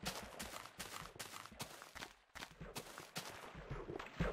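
Footsteps thud on grass.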